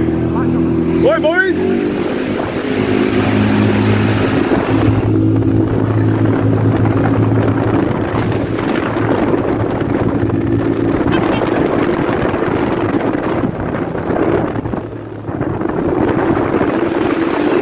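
Wind rushes past close by.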